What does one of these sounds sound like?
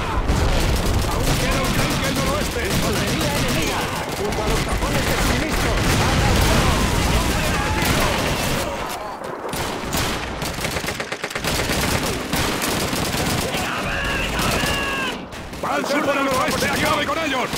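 Rifles and machine guns fire in rapid bursts.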